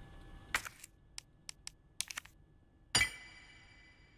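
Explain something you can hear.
A metal medallion clicks into place in a stone slot.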